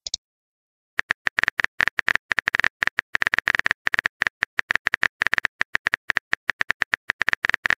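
Keyboard typing clicks tap rapidly and steadily.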